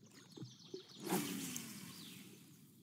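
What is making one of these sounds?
A fishing rod swishes through the air in a cast.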